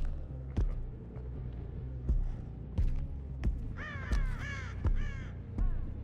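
Heavy footsteps thud on a hard floor at a steady pace.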